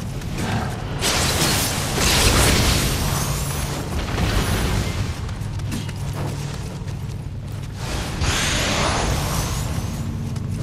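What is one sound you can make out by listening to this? Blades clash and slash with bright ringing hits.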